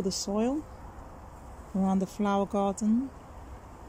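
Gloved hands scrape and dig through loose soil.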